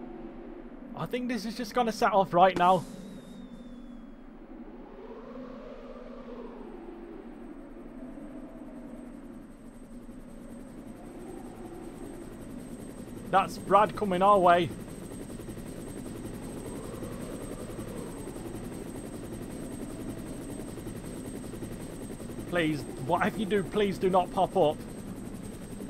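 A man speaks in short, lively bursts close to a microphone.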